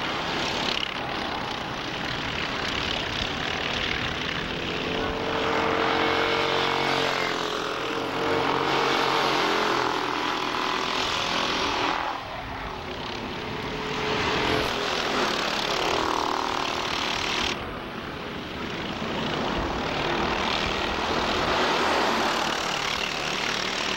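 Kart engines buzz loudly, rising and falling in pitch as the karts race past.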